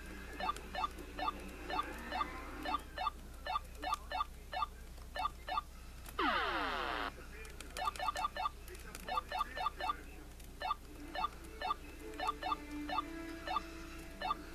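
A video game plays quick repeated hopping blips.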